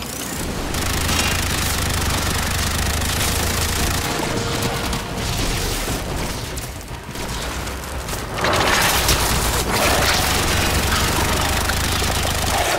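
Energy blasts explode with a roar.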